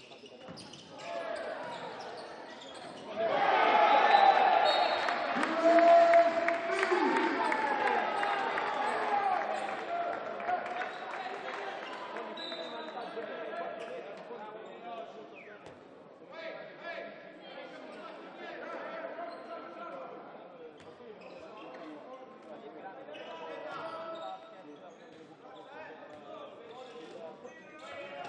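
A ball bounces on a wooden court.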